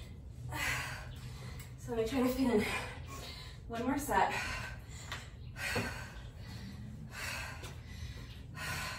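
Sneakers scuff and thud on concrete.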